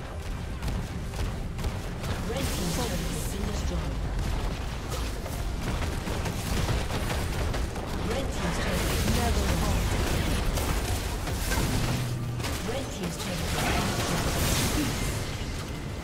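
Fantasy battle spells crackle and blast.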